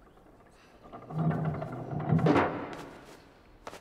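A heavy thud and rumble sound as something lands.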